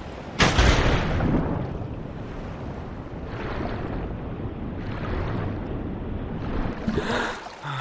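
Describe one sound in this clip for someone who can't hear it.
Muffled underwater rumbling swirls steadily.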